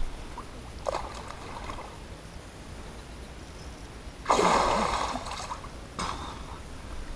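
Water splashes nearby as a person moves through it.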